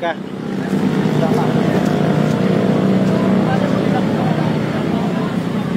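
A crowd of people chatters outdoors.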